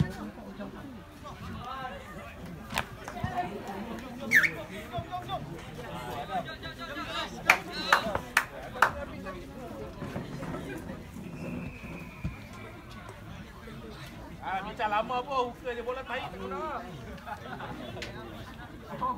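Spectators and players shout and cheer outdoors.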